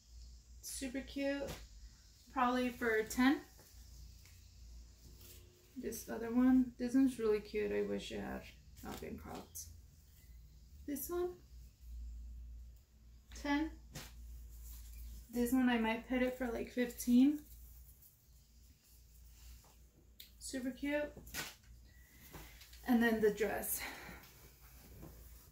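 A young woman talks calmly and close by, in short bursts.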